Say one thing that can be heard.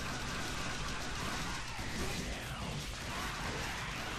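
Sword blades slash and clang.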